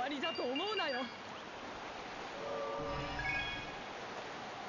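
Bright chimes ring as points are scored.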